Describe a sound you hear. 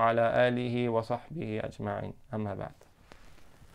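A young man recites in a melodic chanting voice close by.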